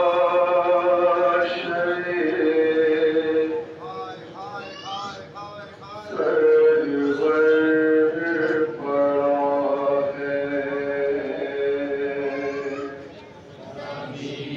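A man sings a mournful chant loudly through a microphone.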